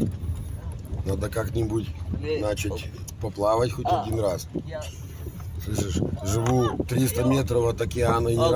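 A man talks calmly nearby inside a car.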